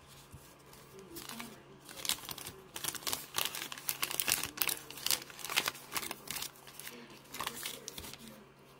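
Foil card packs crinkle and rustle close by as they are handled.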